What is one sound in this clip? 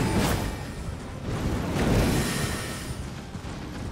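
A magic blast whooshes and crackles.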